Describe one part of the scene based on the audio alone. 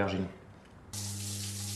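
Water from a shower sprays steadily.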